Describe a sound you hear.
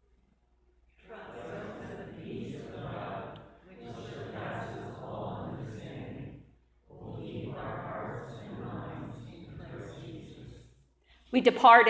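A woman speaks into a microphone, echoing in a large hall.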